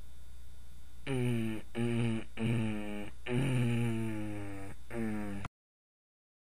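A second young man answers in a drawn-out, whiny voice.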